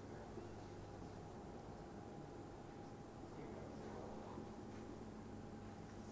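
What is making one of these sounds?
A marker squeaks as it writes on a whiteboard.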